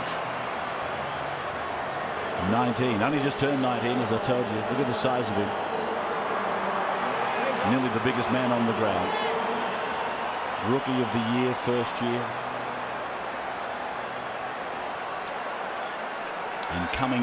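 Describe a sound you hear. A large crowd murmurs and cheers throughout a big echoing stadium.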